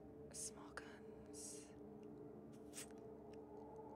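A young woman speaks quietly into a close microphone.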